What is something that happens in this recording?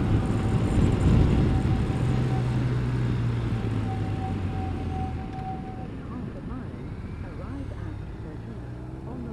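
Wind rushes past a motorcycle rider.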